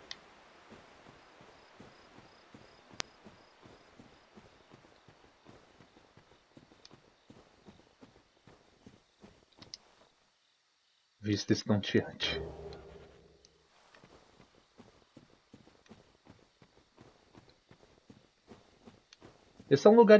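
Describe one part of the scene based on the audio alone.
Armoured footsteps crunch on grass.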